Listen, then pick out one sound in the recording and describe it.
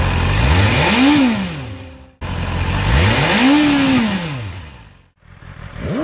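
A motorcycle engine revs sharply close by, twice.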